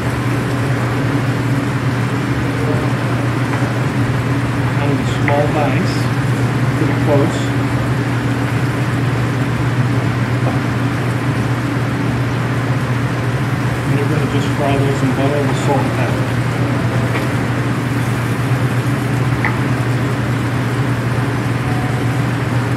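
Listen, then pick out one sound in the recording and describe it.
A knife taps and chops on a cutting board.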